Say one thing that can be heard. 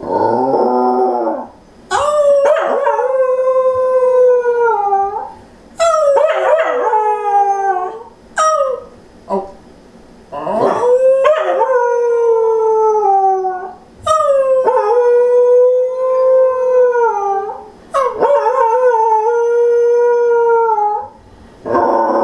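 A dog howls in long, wavering notes close by.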